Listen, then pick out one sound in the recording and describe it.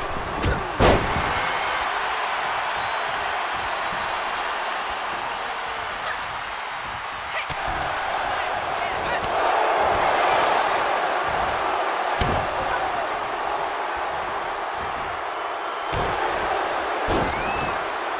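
Heavy bodies thud against a wrestling ring mat.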